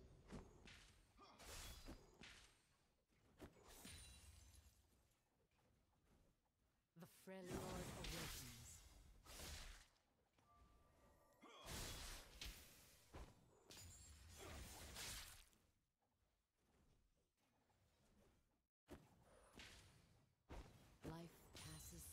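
Game weapons clash and strike repeatedly.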